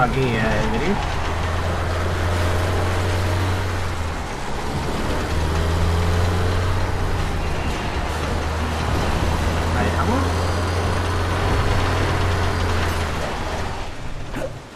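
A large truck engine rumbles and revs.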